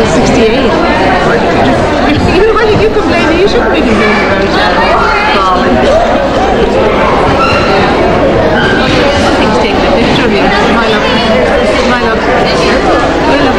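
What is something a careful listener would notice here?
A woman talks warmly and closely to an elderly woman.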